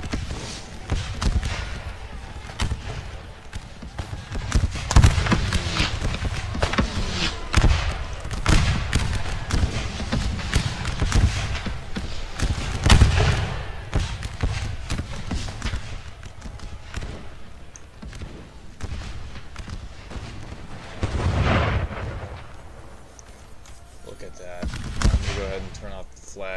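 Muskets fire in rapid, crackling volleys close by.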